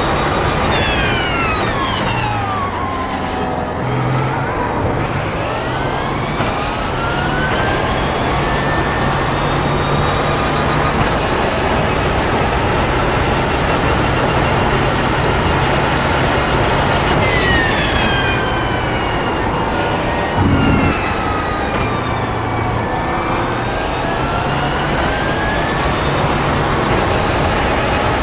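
A racing car engine roars loudly, its pitch dropping as it brakes and climbing as it speeds up.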